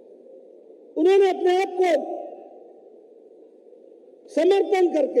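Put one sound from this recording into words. A man speaks loudly and with passion into a microphone, heard through loudspeakers.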